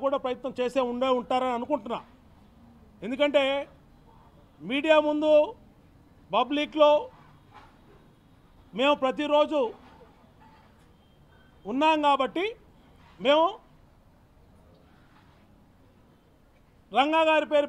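A middle-aged man speaks forcefully into a microphone in short bursts with pauses.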